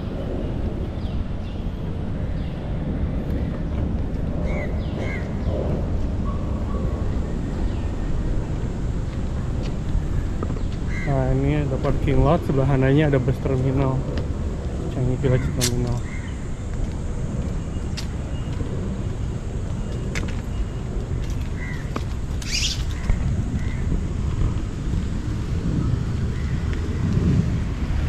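Wind blusters outdoors.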